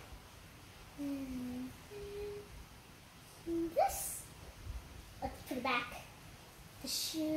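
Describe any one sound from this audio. A young girl speaks and hums playfully close by.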